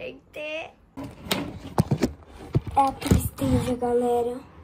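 A phone is handled with rubbing and knocking.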